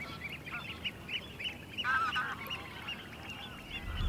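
A wading bird pipes repeatedly nearby.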